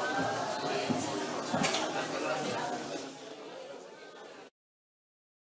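A crowd of people chatters in a large hall.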